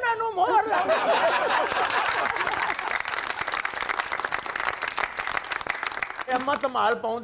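A studio audience applauds and cheers.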